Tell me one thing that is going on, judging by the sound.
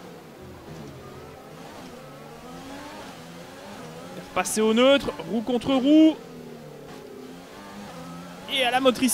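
A racing car engine hums and revs up and down in gear changes.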